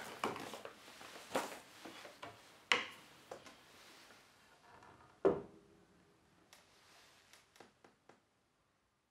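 A wooden piano lid knocks and thuds as it is handled and shut.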